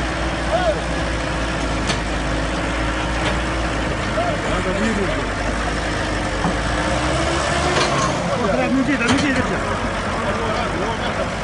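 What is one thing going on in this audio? A digger's diesel engine rumbles steadily close by.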